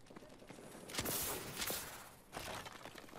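An assault rifle fires a burst of shots.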